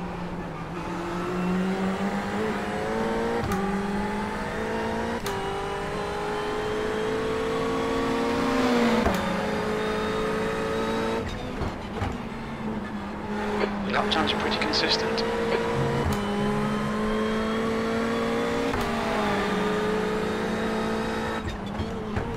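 A racing car engine roars, rising in pitch as it speeds up and dropping as it shifts gear and brakes.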